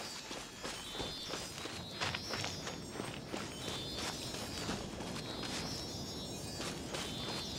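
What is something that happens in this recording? Footsteps patter quickly along a dirt path.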